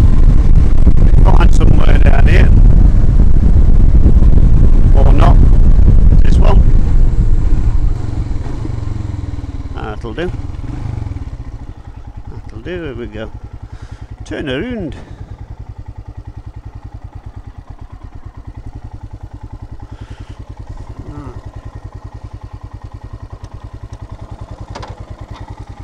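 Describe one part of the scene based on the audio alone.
A motorcycle engine roars while riding, then slows and idles with a steady throbbing.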